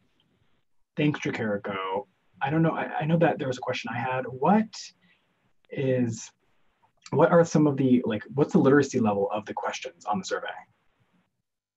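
A young man speaks with animation over an online call.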